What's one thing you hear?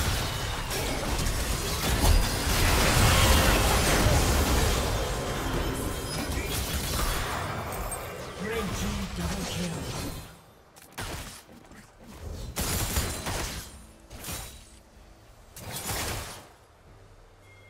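Game spell effects crackle and blast in a fight.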